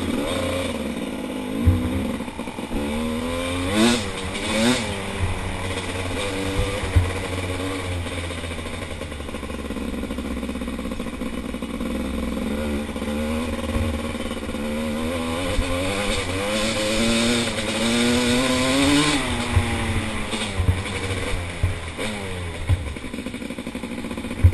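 Another dirt bike engine buzzes ahead.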